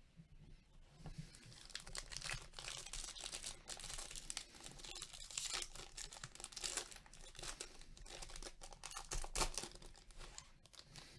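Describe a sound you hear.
A foil trading card pack crinkles as it is torn open.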